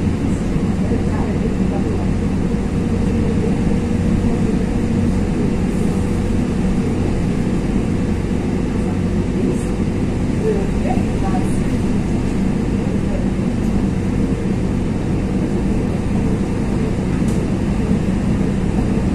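A vehicle engine rumbles steadily from inside a moving car.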